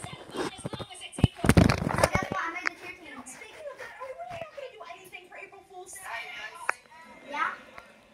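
A television plays voices in the room.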